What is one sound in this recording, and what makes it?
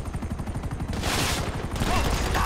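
Bullets smash into a wall.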